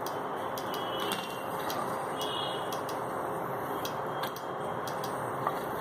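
Hot oil sizzles and crackles steadily in a pan.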